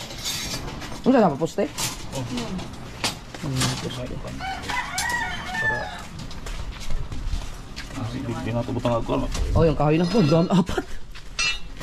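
A man speaks casually nearby.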